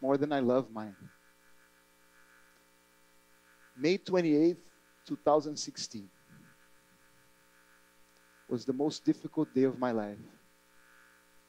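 A man speaks calmly through a headset microphone, with pauses between phrases.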